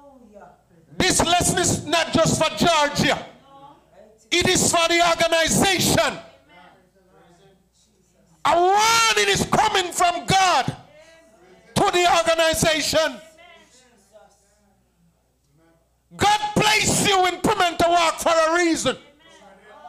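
A man preaches with animation through a microphone in an echoing hall, in loud bursts.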